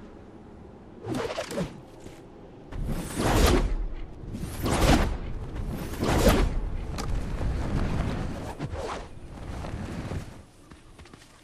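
Wind rushes loudly past a gliding character.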